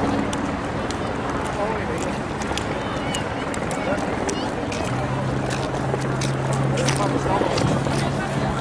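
Footsteps tap on wet pavement nearby.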